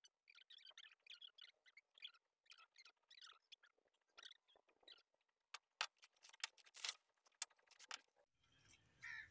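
Bricks clack and knock against each other as they are stacked.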